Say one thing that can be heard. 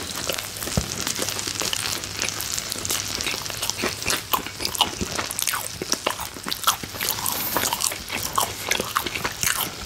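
Crusty bread crackles and snaps as fingers break it apart.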